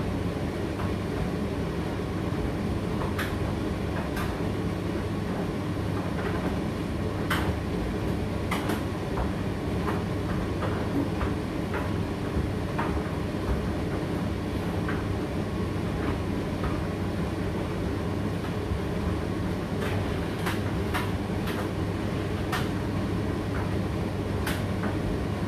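A condenser tumble dryer runs with a steady low hum.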